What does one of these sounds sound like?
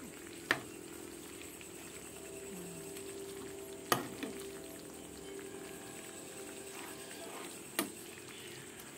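A metal spoon clinks against a frying pan.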